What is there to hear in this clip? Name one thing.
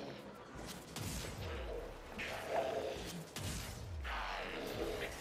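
Heavy booming blasts and whooshes go off in quick bursts.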